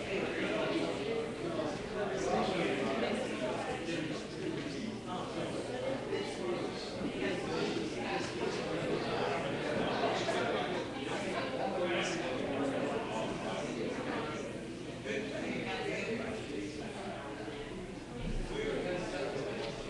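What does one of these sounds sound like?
A mixed choir sings together in a large, echoing church.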